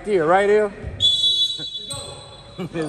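A referee's whistle blows a short shrill blast.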